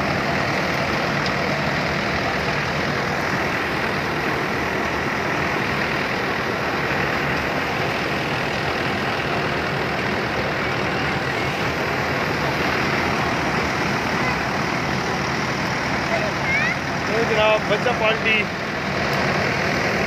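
A farm machine roars steadily nearby.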